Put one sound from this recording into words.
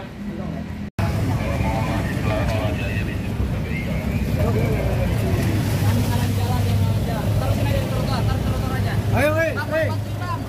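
Several men talk loudly close by outdoors.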